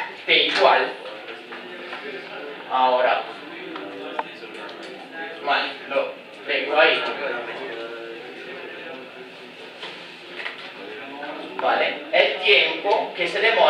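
A young man speaks calmly nearby, explaining.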